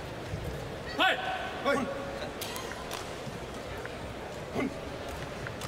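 A shuttlecock is struck sharply with rackets.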